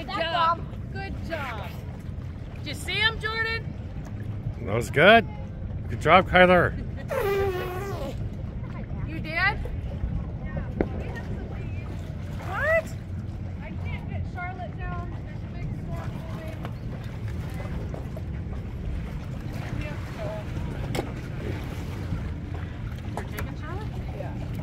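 Choppy lake water laps against a wooden dock.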